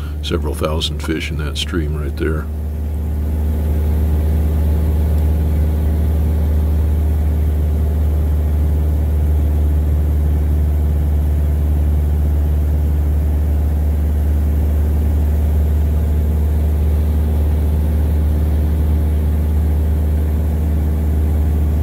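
A small plane's engine drones loudly and steadily in the cabin.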